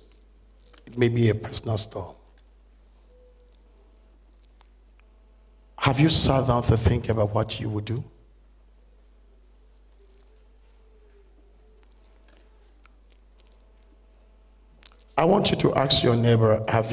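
A middle-aged man speaks into a microphone in short bursts, with long pauses between.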